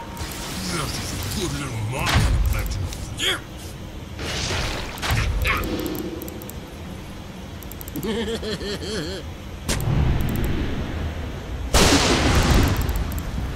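Weapons clash and thud in a fight.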